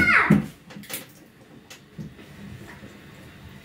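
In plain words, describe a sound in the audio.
A young child calls out loudly nearby.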